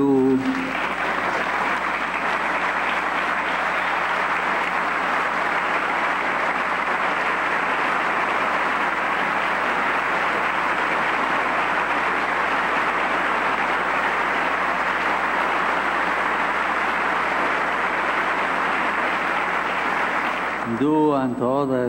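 A large crowd applauds loudly and steadily.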